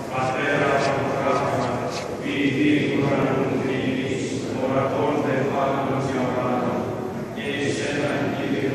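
Men chant together in a slow, resonant, echoing hall.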